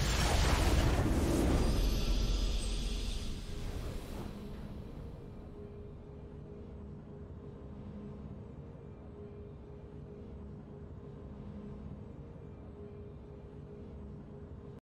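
Soft game music plays in the background.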